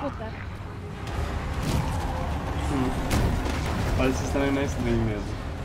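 A heavy truck engine rumbles low as it approaches.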